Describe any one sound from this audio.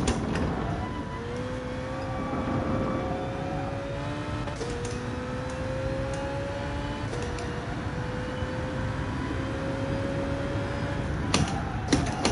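A racing car engine revs up and climbs in pitch, dropping briefly at each gear change.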